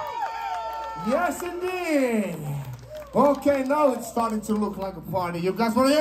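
A man shouts and sings into a microphone.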